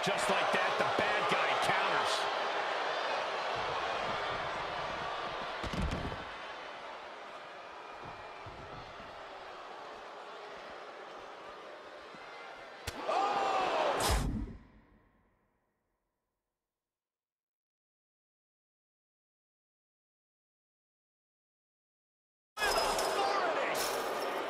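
A crowd cheers and roars loudly.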